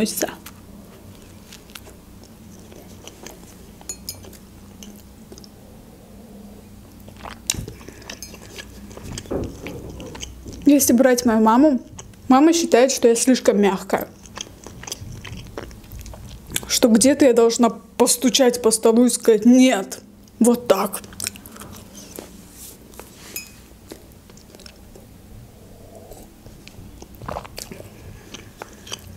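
A young woman chews food with soft crunching close to a microphone.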